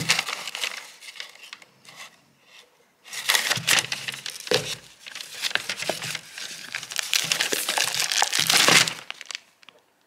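Plastic wrapping rustles and crinkles.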